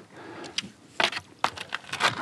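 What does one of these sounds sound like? A paddle splashes in shallow water.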